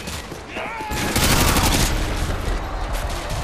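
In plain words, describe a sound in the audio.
A rifle fires a rapid burst of shots at close range.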